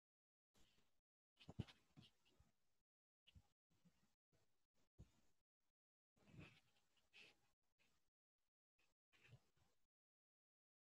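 Earphones rustle and knock as they are handled close to a microphone.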